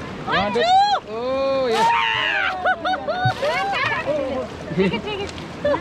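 A young woman laughs and shouts excitedly close by.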